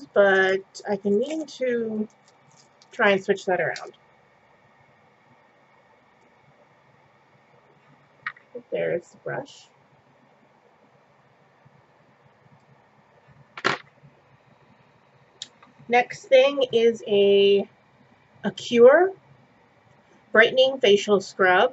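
A young woman talks calmly and closely into a microphone, with pauses.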